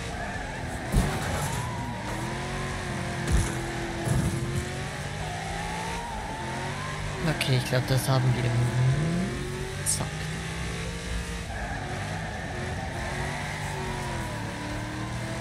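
Tyres screech as a car skids and drifts.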